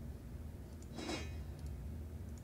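A soft game interface sound whooshes as an item is picked up.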